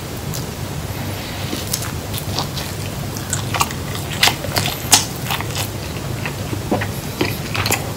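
A young man chews food noisily.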